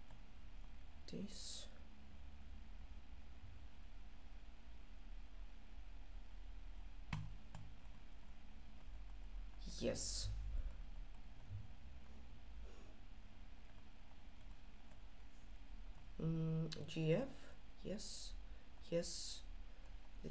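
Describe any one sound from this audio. A young man speaks briefly and quietly into a microphone.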